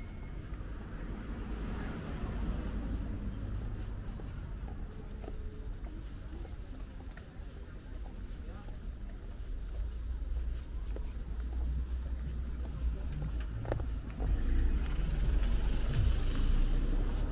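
Footsteps scuff along a pavement close by.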